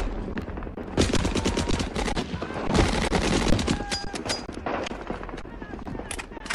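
A submachine gun fires rapid bursts.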